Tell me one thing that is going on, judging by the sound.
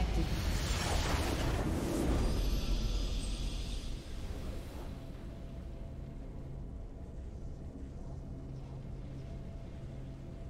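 A game victory fanfare plays.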